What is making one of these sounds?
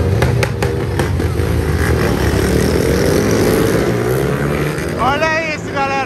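Motorcycle engines rev loudly close by.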